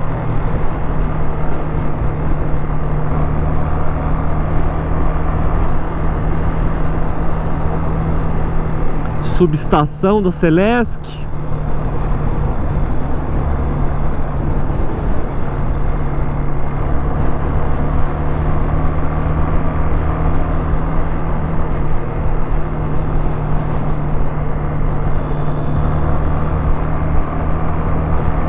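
A single-cylinder four-stroke motorcycle engine hums while cruising.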